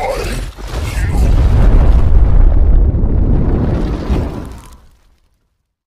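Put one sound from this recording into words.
A fireball roars and whooshes.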